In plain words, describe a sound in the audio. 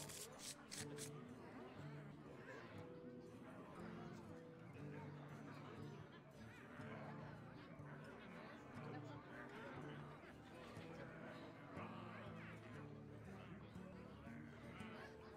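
Soft game music plays steadily.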